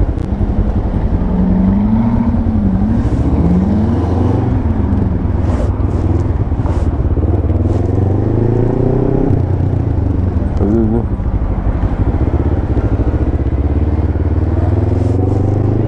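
Wind buffets loudly past the rider.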